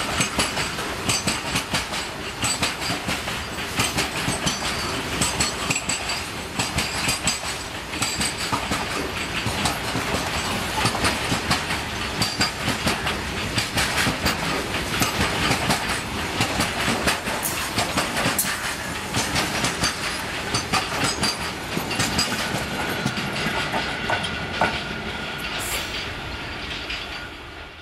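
Metal wagons squeal and screech on the rails.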